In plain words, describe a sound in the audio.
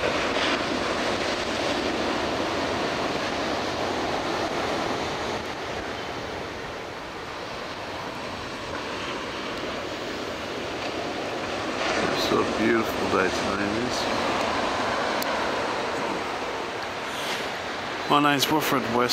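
Waves wash steadily onto a shore in the distance.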